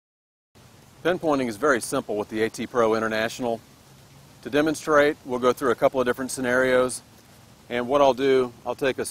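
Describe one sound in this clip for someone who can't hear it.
A middle-aged man talks calmly and clearly into a microphone, close by.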